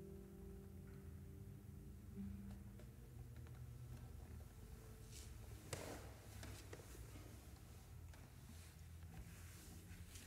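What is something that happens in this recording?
Two guitars play softly.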